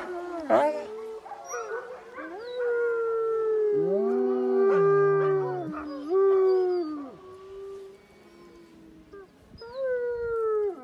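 A husky howls and yowls in long, wavering cries close by.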